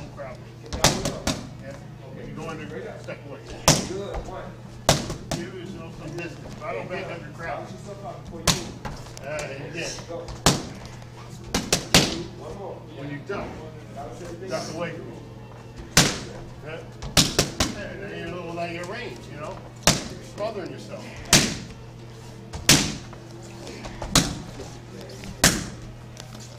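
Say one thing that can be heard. Boxing gloves smack into focus mitts in sharp punches.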